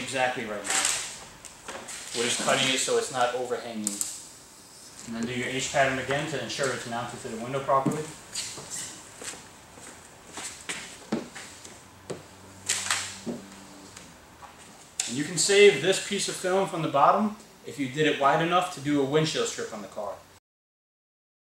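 A young man talks calmly and explains, close by.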